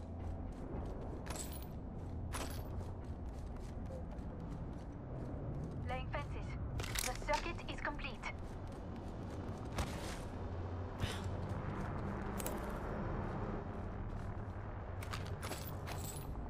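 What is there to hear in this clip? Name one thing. Items are picked up with short clicks and rattles.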